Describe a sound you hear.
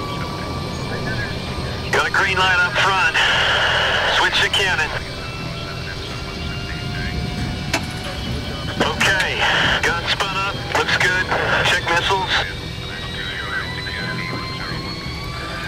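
A jet engine idles with a steady low rumble.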